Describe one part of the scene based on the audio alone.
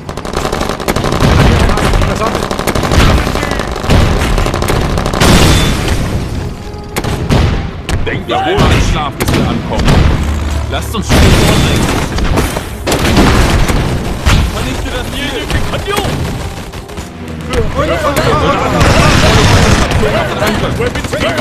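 Explosions and gunfire boom repeatedly.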